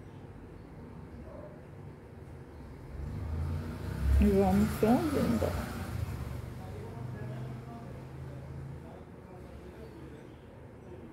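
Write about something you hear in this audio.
Thread is pulled through cloth with a soft rustle.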